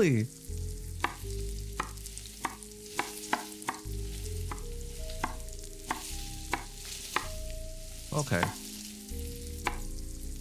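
A knife chops through a carrot on a cutting board with sharp, regular knocks.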